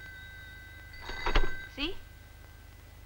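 A woman speaks briefly into a telephone.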